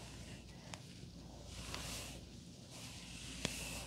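A hairbrush brushes softly through hair.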